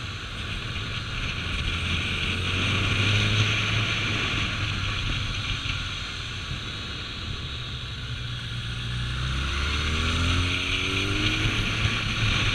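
A motorcycle engine hums steadily up close, rising and falling in pitch.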